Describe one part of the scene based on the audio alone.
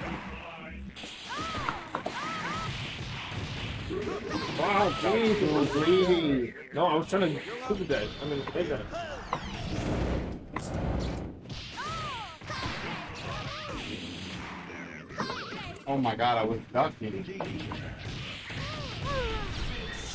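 Two young men talk with animation close to a microphone.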